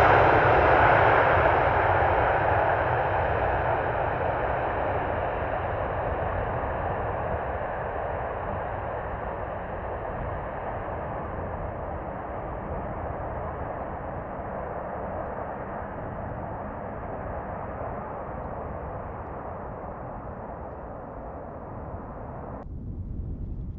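Jet engines roar loudly as an airliner rolls down a runway and slowly fade into the distance.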